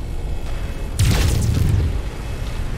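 Lasers fire with a loud rushing burst.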